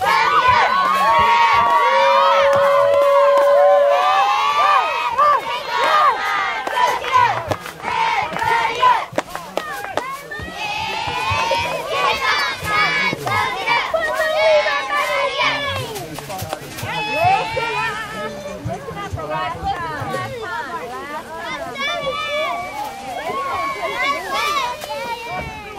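Pom-poms rustle as girls shake them.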